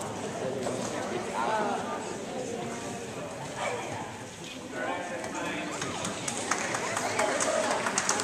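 Several men and women talk at a distance in a large echoing hall.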